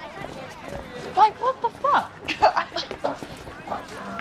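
A young woman speaks with surprise close by.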